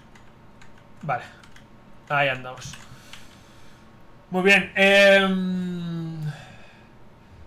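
A young man speaks close to a microphone in short, drawn-out phrases.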